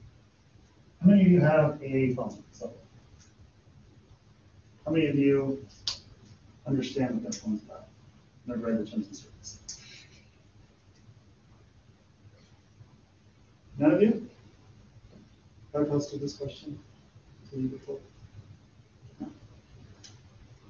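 A man speaks calmly in a room, in short bursts with pauses.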